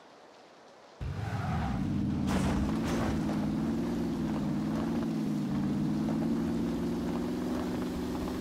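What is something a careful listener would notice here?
A car engine starts and revs steadily as the car drives off.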